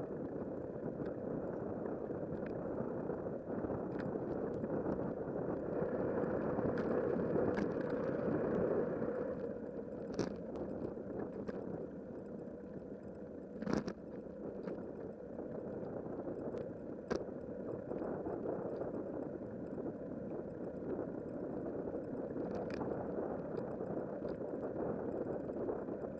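Tyres rumble and hum on a paved path, with small bumps clicking.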